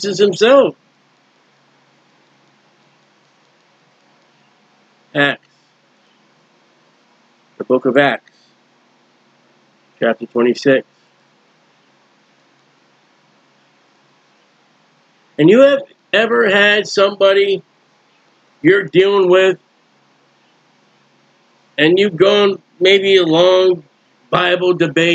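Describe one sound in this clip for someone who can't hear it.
A middle-aged man speaks calmly into a close microphone, in short bursts with pauses.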